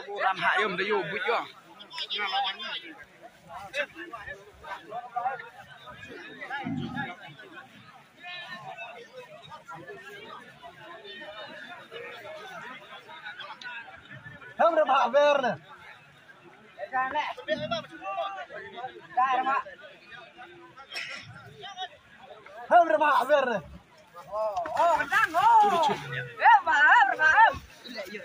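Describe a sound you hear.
Men in a crowd shout and call out excitedly outdoors.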